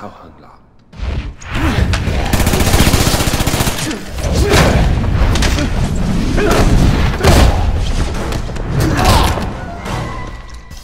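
Men scuffle with heavy blows and thuds.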